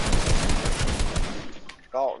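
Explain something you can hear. Rapid gunfire crackles loudly.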